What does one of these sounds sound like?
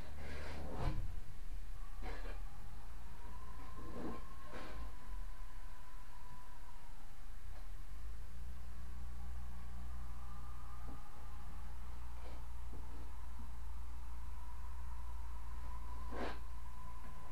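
Sharp knocks sound now and then as a man works at a wall.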